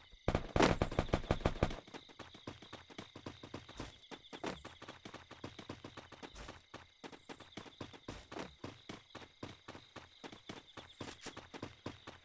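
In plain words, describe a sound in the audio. Quick running footsteps thud steadily.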